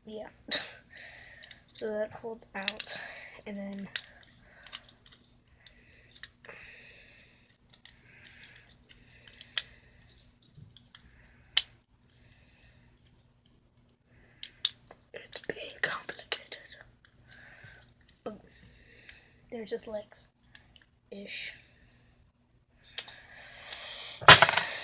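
Plastic toy parts click and rattle in a boy's hands.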